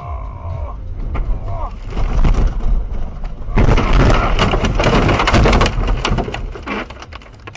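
A car crashes and tumbles with loud banging and crunching thumps.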